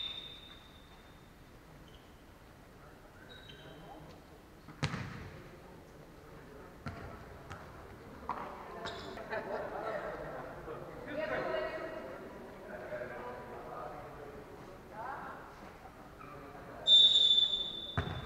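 Sneakers squeak sharply on a hard indoor court.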